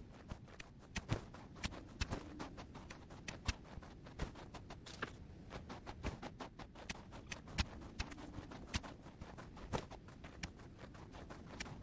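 A bow twangs as arrows are shot repeatedly.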